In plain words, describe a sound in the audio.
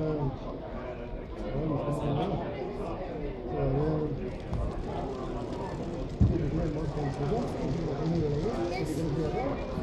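A crowd of adults and children chatters nearby.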